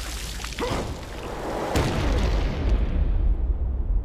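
A heavy thud lands on the ground.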